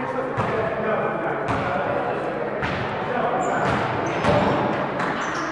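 A basketball bounces on a gym floor, echoing in a large hall.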